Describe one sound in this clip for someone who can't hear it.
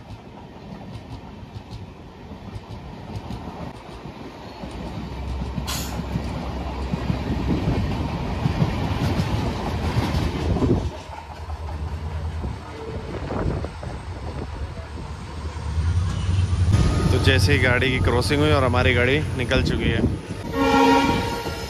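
Train wheels clatter and rumble steadily on the tracks.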